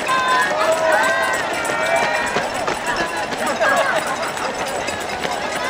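Many runners' footsteps patter on the road.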